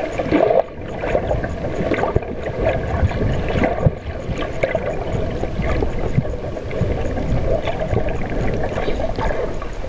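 Water swirls with a muffled, steady rush.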